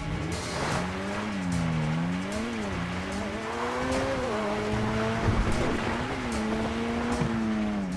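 Tyres rumble over a bumpy dirt track.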